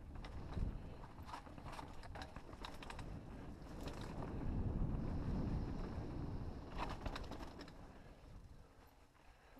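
Wind rumbles and buffets outdoors, then eases.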